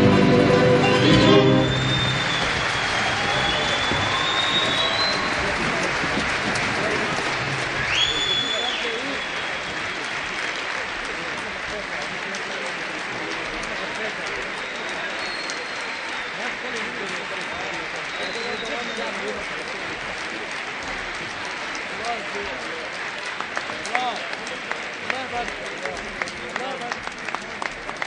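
A large audience applauds and cheers throughout.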